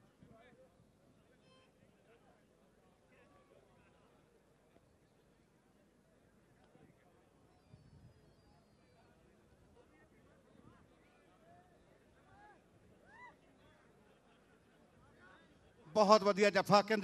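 A large crowd murmurs and cheers outdoors in the distance.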